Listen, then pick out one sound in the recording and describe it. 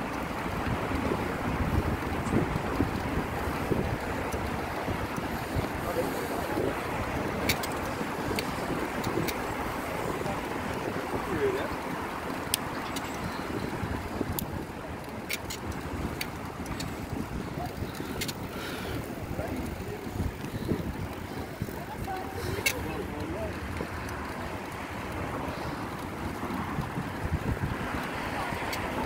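Wind buffets the microphone while riding outdoors.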